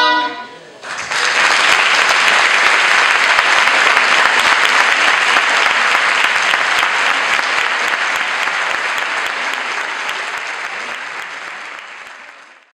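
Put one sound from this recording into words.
An audience claps loudly in a large hall, slowly fading.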